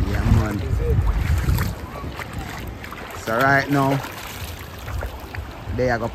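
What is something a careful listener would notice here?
Gentle waves lap at a shore outdoors.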